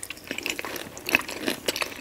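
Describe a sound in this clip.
A woman makes a soft kissing smack with her lips close to a microphone.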